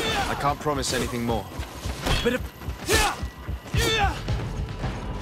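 Swords clash and strike in a short fight.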